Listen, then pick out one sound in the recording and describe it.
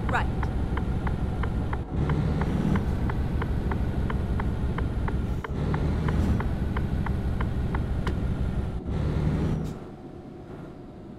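A truck engine rumbles steadily and then quietens.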